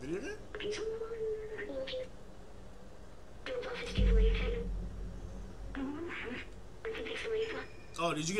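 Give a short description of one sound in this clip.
A small robot chirps in short electronic beeps.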